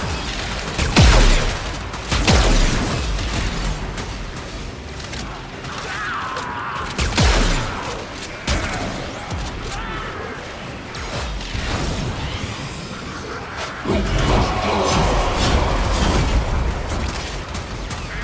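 Swords slash and clang in a fight.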